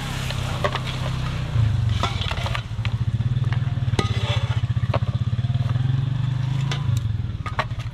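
Pieces of fried chicken drop into a foil tray.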